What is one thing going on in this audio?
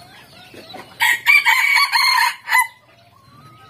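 A rooster crows loudly nearby.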